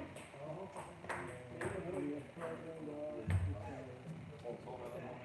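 A table tennis ball clicks back and forth between paddles and the table in an echoing hall.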